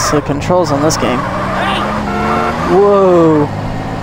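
Car tyres screech through a sharp turn.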